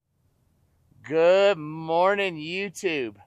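A man speaks with animation close to the microphone, outdoors.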